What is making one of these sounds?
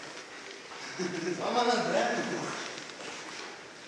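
A man talks and laughs.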